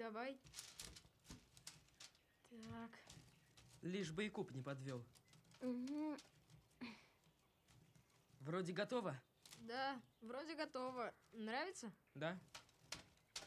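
A boy speaks calmly nearby.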